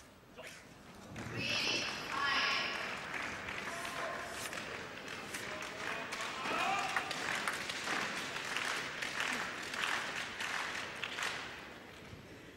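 A crowd in a large hall cheers and applauds.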